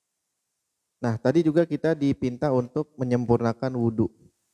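A young man sings into a close microphone.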